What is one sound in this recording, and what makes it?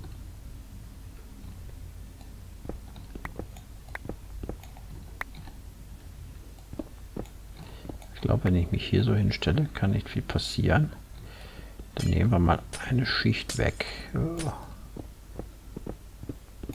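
A pickaxe chips and cracks at stone blocks in quick taps.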